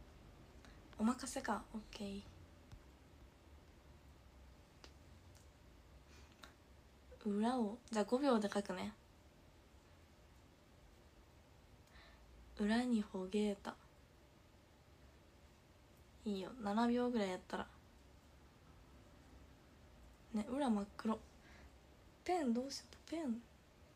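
A young woman talks calmly close to the microphone, in short bursts with pauses.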